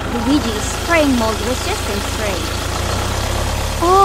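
Water sprays from a pipe.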